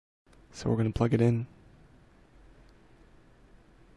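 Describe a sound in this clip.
A charging cable clicks into a phone's port.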